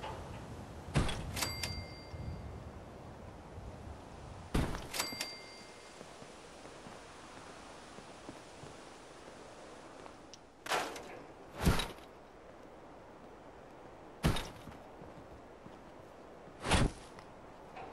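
Short electronic clicks and thuds sound as menu choices are made.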